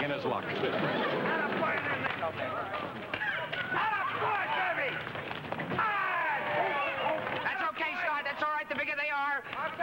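A man shouts excitedly.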